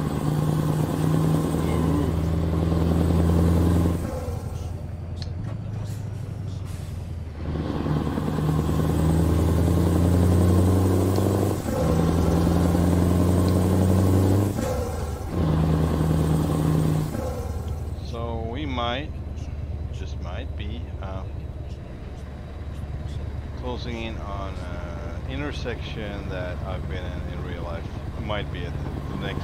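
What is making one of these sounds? A truck engine drones and revs up through the gears.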